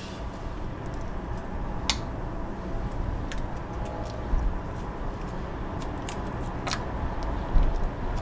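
Small plastic clicks and taps come from a device being fitted by hand.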